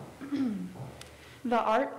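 A young woman begins reading out through a microphone.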